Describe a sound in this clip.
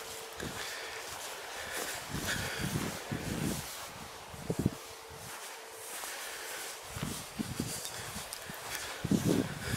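Footsteps tread on a grassy path.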